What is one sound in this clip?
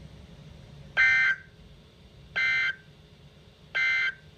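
A radio alert sounds loud, pitched electronic beeps at spaced intervals.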